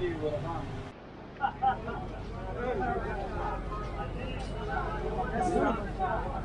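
Many men talk in a lively crowd outdoors.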